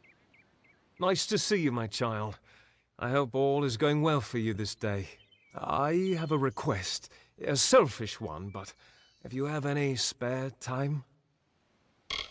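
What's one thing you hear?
A man speaks calmly and warmly, close by.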